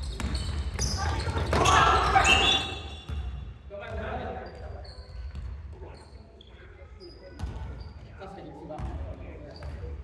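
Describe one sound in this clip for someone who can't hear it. Young players shout and call out in a large echoing hall.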